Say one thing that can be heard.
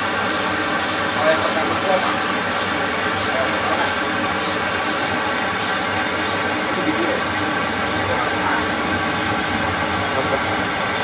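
A gas burner roars steadily beneath a metal pan.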